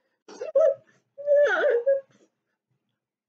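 A woman laughs and squeals close to a microphone.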